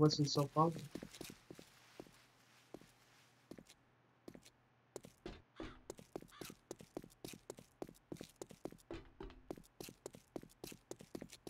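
Footsteps crunch steadily over rough ground.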